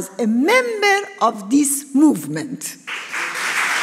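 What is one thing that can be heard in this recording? A woman speaks forcefully into a microphone in a large hall.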